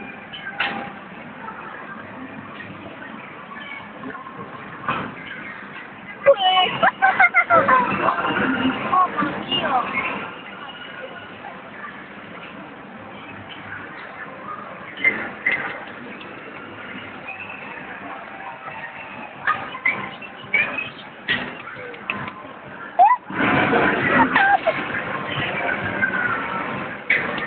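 An arcade game plays loud music and sound effects through a small speaker.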